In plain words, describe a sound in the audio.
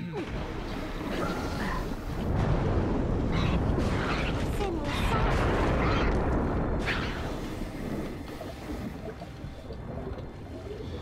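Weapons swing and strike in a noisy fight.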